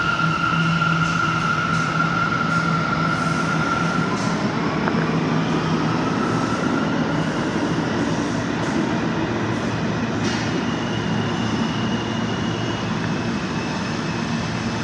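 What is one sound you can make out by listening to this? A subway train rumbles and screeches as it pulls away down the track.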